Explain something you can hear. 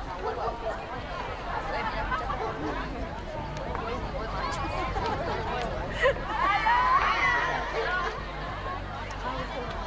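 Several players talk and call out across an open field at a distance.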